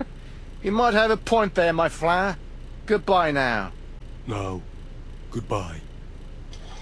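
A man's voice speaks slyly and says goodbye.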